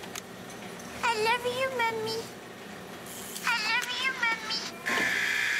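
A baby doll gives a high, wavering electronic cry twice.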